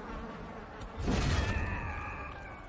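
A sword strikes with a heavy slashing impact.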